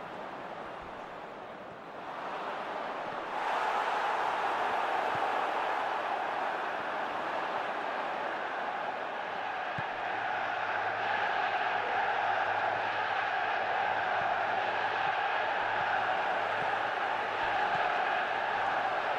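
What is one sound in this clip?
A large stadium crowd roars and chants steadily, rising louder after a few seconds.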